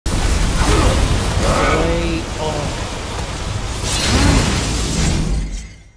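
Energy blasts crackle and roar loudly.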